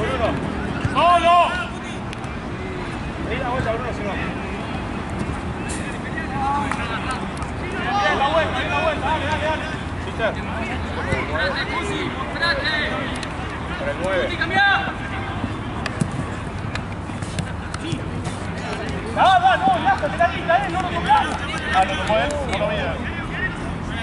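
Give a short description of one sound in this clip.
Young men shout to each other outdoors during a football match.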